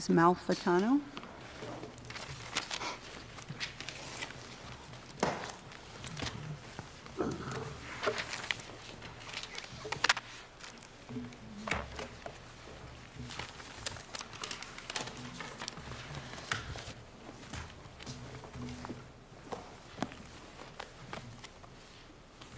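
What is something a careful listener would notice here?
People murmur quietly in a large room.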